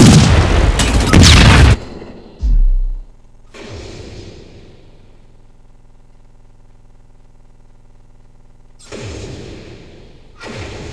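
Gunfire rattles in loud bursts.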